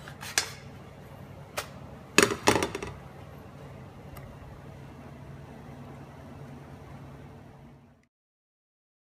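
A gas burner hisses.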